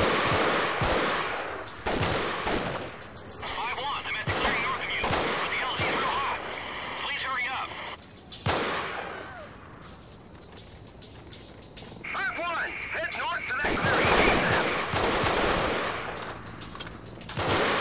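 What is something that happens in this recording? Rifle shots crack in short bursts.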